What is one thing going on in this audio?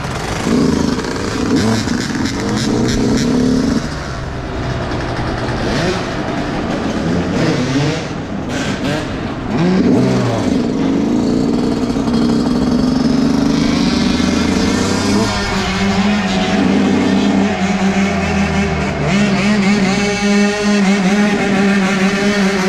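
Other dirt bike engines whine nearby.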